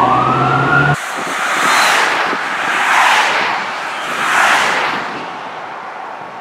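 Vehicles whoosh past one after another on a road.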